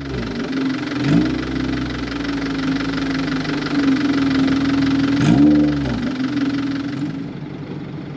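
A car engine idles with a deep rumble and revs briefly twice.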